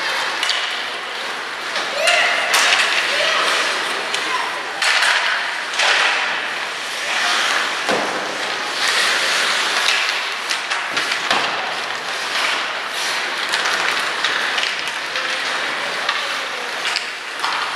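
Hockey sticks clack against a puck and against each other.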